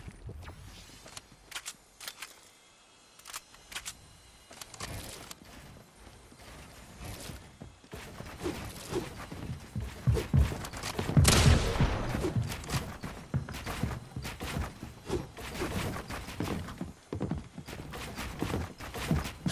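Game building pieces click and snap into place in quick bursts.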